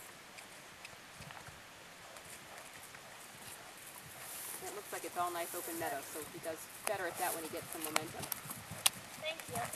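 A horse canters with hooves thudding on grass.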